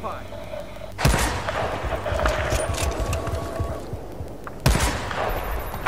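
A bolt-action sniper rifle fires two sharp shots.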